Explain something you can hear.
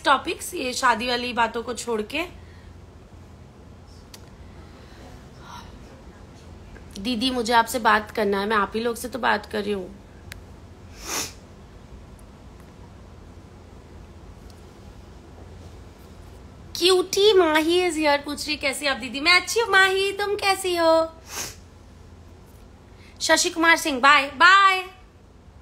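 A young woman talks calmly and warmly close to a microphone, pausing now and then.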